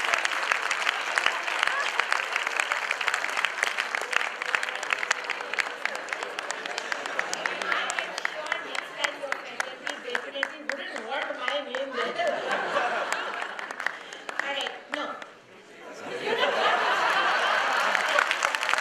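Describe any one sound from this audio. A large audience claps and cheers in an echoing hall.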